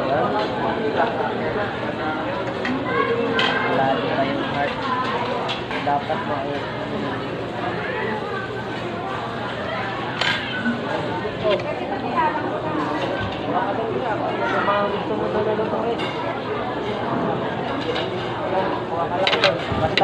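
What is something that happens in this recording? Many voices chatter in a busy, echoing room.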